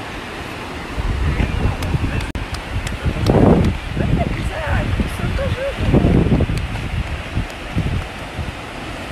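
Wind gusts roar across a microphone outdoors.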